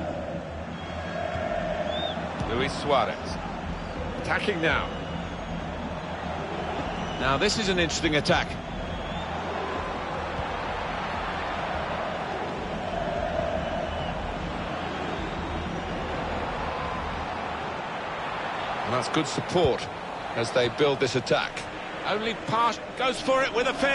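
A large stadium crowd murmurs and cheers steadily.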